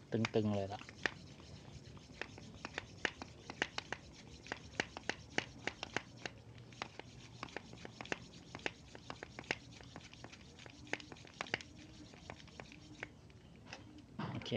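A hand pump pushes air into a bicycle tyre with steady strokes.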